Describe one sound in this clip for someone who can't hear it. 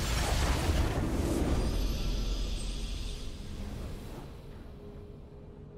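A triumphant victory fanfare plays and fades.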